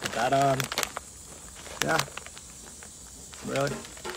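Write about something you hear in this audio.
A man crunches a chip.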